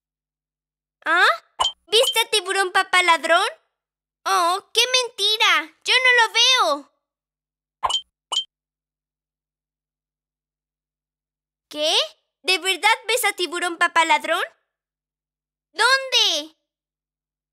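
A high, childlike cartoon voice speaks with animation.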